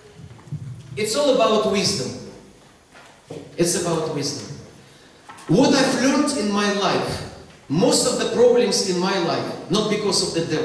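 A middle-aged man speaks animatedly into a microphone in an echoing hall.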